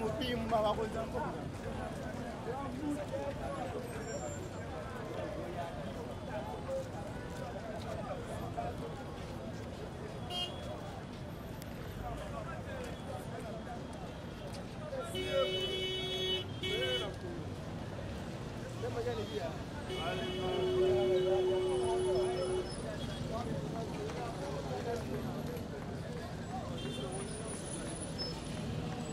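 Traffic hums along a busy road.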